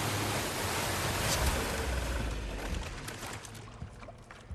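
Water splashes and rushes.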